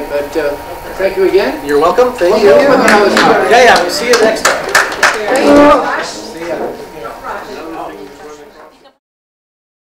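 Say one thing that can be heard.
A man speaks to a small audience.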